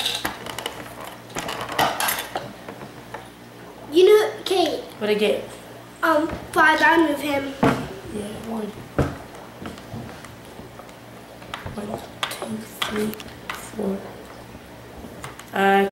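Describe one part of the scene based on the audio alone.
A teenage boy talks close by.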